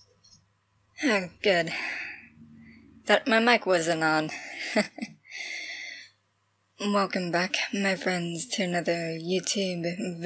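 A young woman speaks calmly and cheerfully, close to a webcam microphone.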